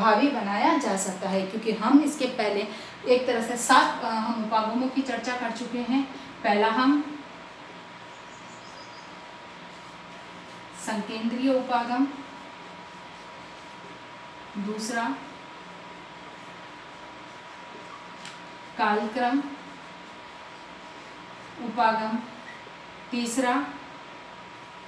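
A middle-aged woman speaks calmly and clearly nearby, pausing often.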